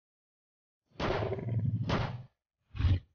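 A large beast roars loudly and growls.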